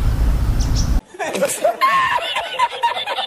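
A man laughs loudly and heartily.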